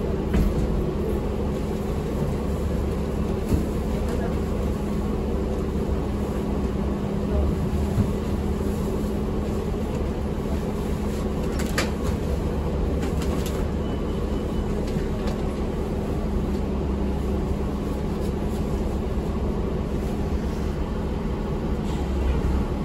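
A bus engine hums and rumbles steadily.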